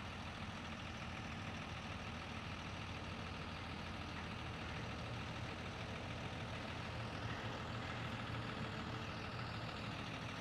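A tractor engine hums steadily nearby.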